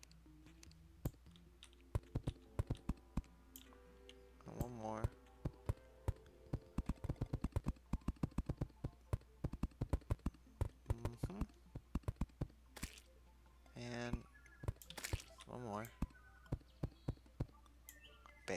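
Quick soft clicks sound as blocks are placed one after another.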